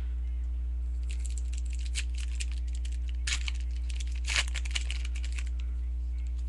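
Hands fumble with a small plastic object, making quick clicks and rustles close by.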